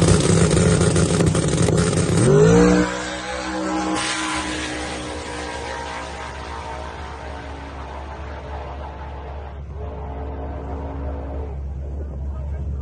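A race car engine roars loudly, then speeds away and fades into the distance.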